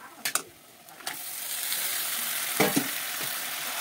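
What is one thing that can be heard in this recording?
Raw meat drops with soft thuds into a metal pan.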